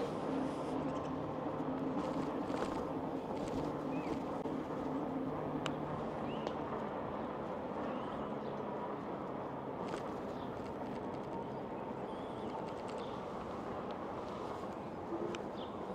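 Tyres roll on asphalt.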